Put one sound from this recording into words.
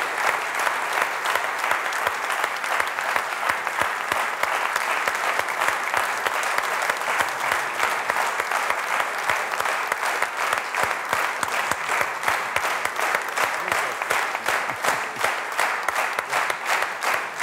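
A man claps his hands close by.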